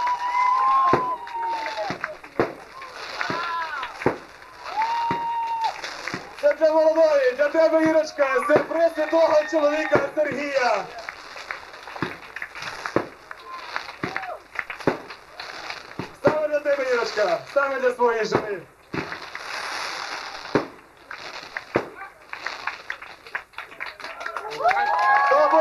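Firework rockets whistle and wail as they shoot up.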